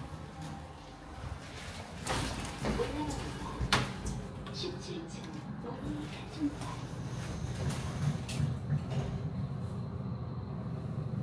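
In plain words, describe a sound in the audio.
A low elevator motor hums steadily.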